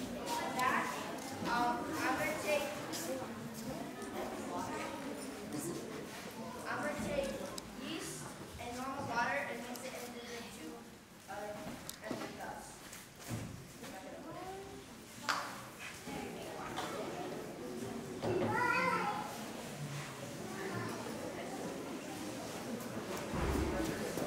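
A young girl talks with animation.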